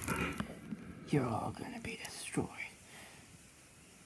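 Plastic action figures click and knock together.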